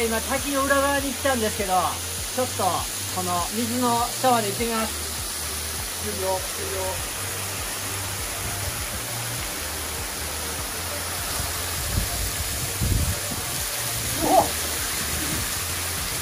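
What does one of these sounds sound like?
A waterfall splashes and rushes steadily onto rocks.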